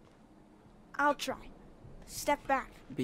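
A boy speaks softly and close by.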